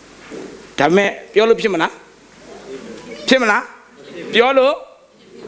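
A man speaks with animation into a microphone in an echoing hall.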